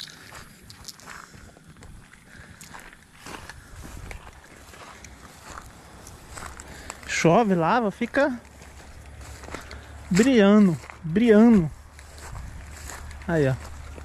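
Footsteps crunch on dry gravel and grass.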